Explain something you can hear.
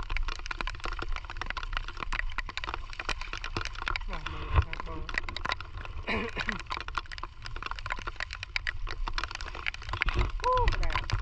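Rain patters steadily on wet mud and shallow water.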